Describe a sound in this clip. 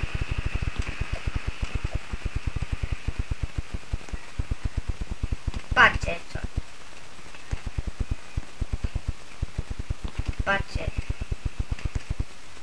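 Quick game footsteps patter steadily.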